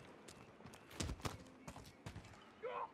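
A rifle fires sharp, rapid shots.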